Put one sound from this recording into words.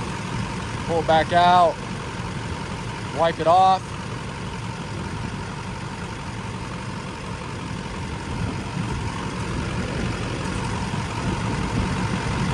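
A cloth wipes and rubs softly over engine parts.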